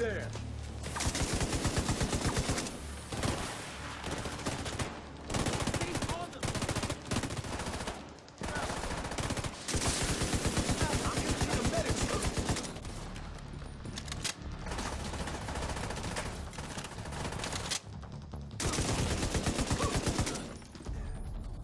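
An automatic rifle fires rapid bursts of gunshots.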